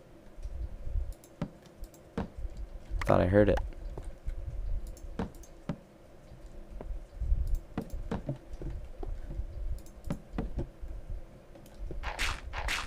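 Footsteps tap on stone at an even pace.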